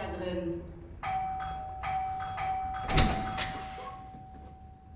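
A door clicks and creaks open.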